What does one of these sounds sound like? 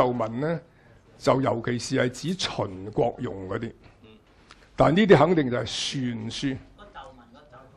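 An elderly man lectures calmly into a microphone.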